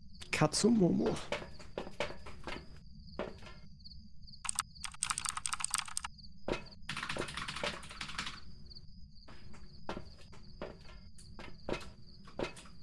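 Footsteps clank on a metal grating floor.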